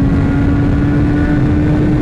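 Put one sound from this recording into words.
A truck roars by close alongside.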